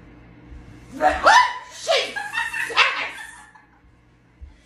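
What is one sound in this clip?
A woman screams in fright close by.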